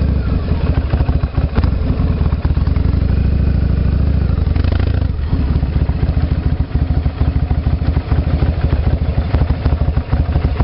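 A motorcycle engine rumbles with a fast, pulsing beat as it rides along.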